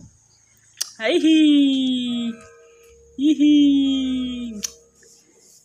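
A baby coos in drawn-out vocal sounds.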